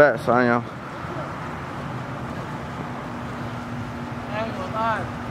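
A man calls out from a distance outdoors.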